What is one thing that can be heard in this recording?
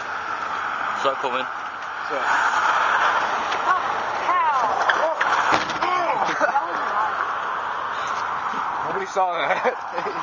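A teenage boy talks and laughs close by.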